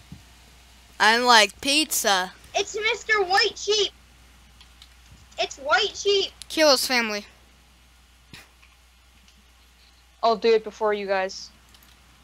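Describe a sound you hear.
A boy talks with animation into a close microphone.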